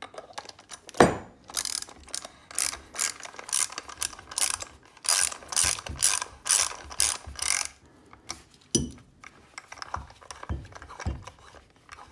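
A metal tool knocks on a wooden surface.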